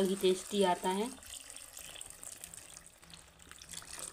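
Thin liquid pours into a metal wok.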